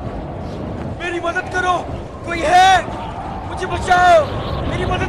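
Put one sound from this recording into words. A man shouts out loud in anguish.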